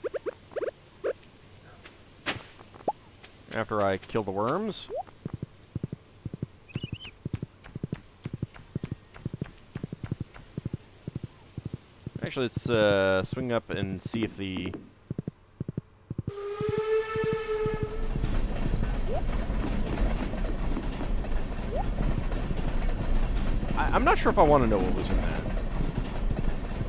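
Horse hooves clop steadily on dirt.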